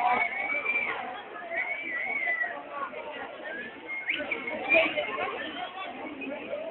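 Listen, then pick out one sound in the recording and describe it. A crowd of people talks and shouts outdoors.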